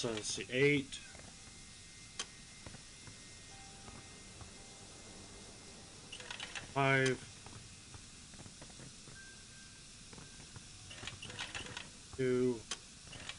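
A metal dial clicks as it turns.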